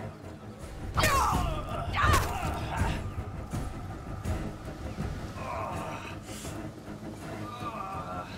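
A metal weapon swings and strikes.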